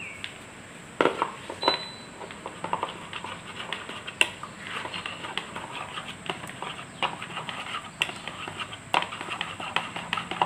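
A metal spoon clinks and scrapes against a plastic bowl as it stirs.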